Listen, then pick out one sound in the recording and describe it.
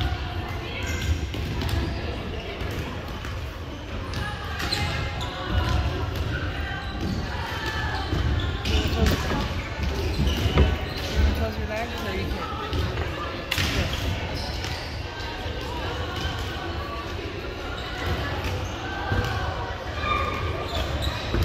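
Volleyballs thump against hands and bounce on a hard floor.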